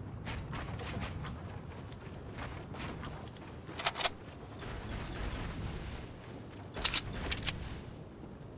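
Wooden walls snap into place with sharp clicks and thuds.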